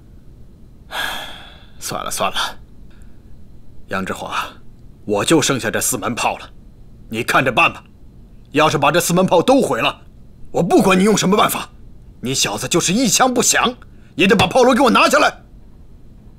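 An older man with a gruff voice speaks forcefully up close.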